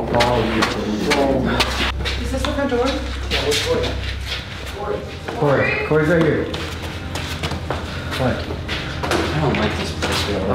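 Men talk in low, hushed voices close by.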